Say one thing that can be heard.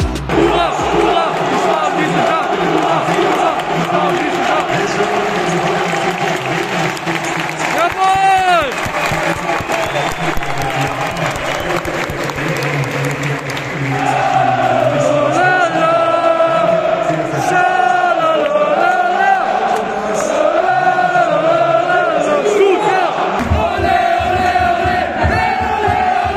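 A large stadium crowd sings and chants loudly in an open, echoing space.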